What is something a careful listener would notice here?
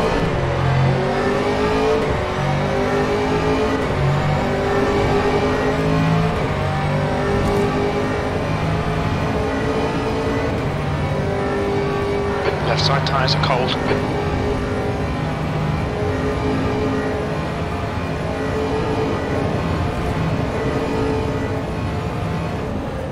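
A race car engine roars steadily, shifting up and down through the gears.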